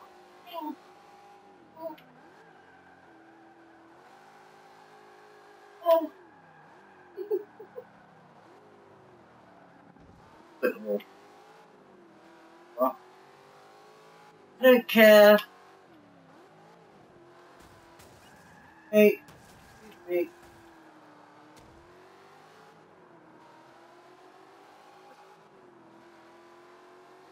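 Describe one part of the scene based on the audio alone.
A car engine drones and revs steadily, rising and falling in pitch.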